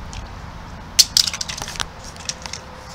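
A toy car clatters along a plastic track.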